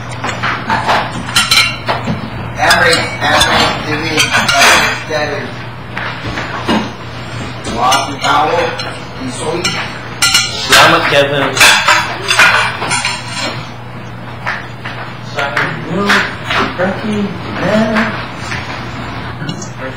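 A young man talks casually, close to a clip-on microphone.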